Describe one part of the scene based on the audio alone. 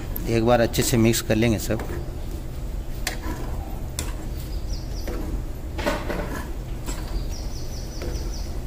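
A metal ladle stirs thick curry in a pan.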